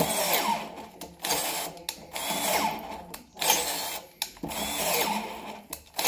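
A power drill whirs in short repeated bursts as it grinds into metal.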